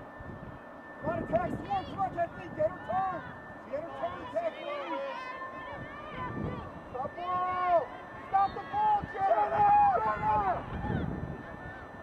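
Girls shout and call out to each other across an open field.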